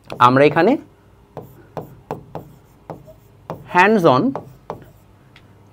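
A pen taps and scratches on a writing board.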